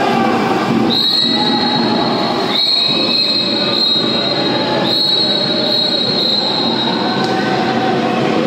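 A referee's whistle blows several short, sharp blasts in a large echoing hall.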